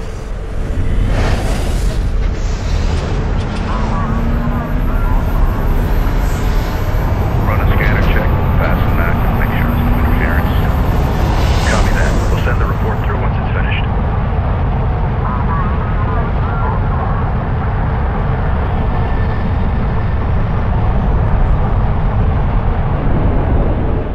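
A huge vehicle rumbles deeply as it rolls over sand.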